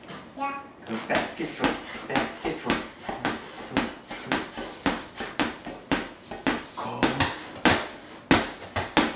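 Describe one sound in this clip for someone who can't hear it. A large rubber ball bounces repeatedly on a wooden floor.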